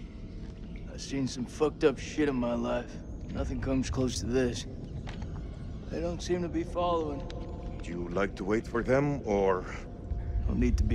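A man speaks in a low, tense voice, close by.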